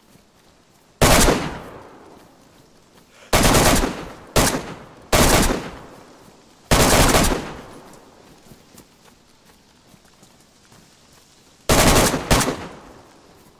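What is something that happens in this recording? A rifle fires loud shots that echo outdoors.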